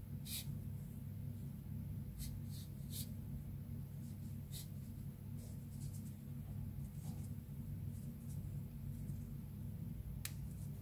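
Fabric cord rustles softly as hands pull and tuck it into a knot.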